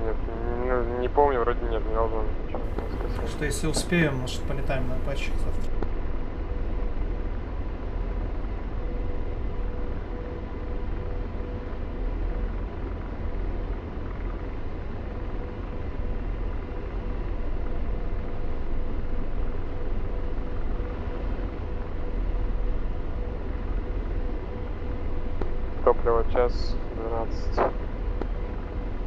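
A jet engine hums low and steady.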